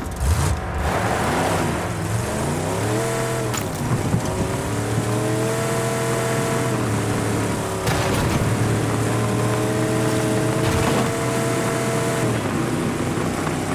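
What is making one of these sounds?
Tyres crunch over a gravel dirt road.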